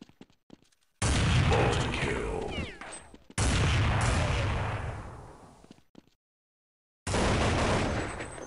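A rifle fires with a loud, booming crack that rings out and slowly fades.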